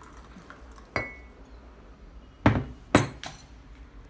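A ceramic teapot is set down on a hard counter with sharp knocks.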